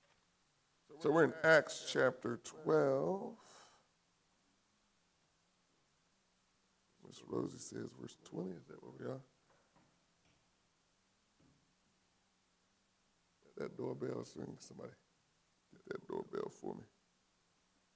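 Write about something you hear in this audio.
A man speaks calmly through a microphone in a large room, in short bursts with pauses.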